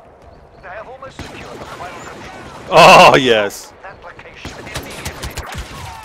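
Blaster rifles fire in quick bursts.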